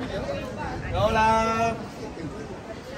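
A young man shouts out loudly with excitement.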